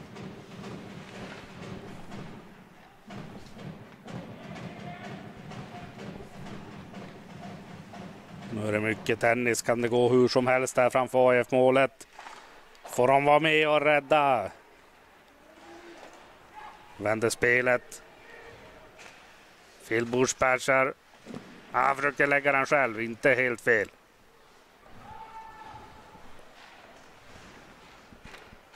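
Ice skates scrape and hiss across an ice rink.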